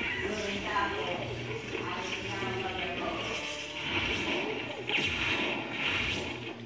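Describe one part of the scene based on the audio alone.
A television loudspeaker plays a lively cartoon soundtrack.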